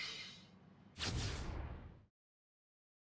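A whooshing sound sweeps in as a menu opens.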